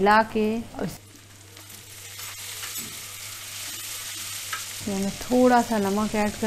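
Food sizzles and fries in a pan.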